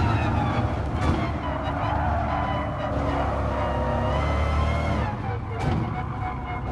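Gear shifts click and pop through the engine's roar.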